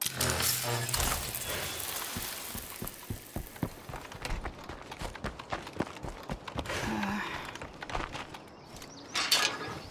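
Footsteps thud quickly as someone runs.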